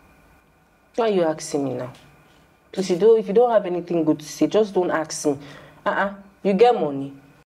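A woman speaks firmly nearby.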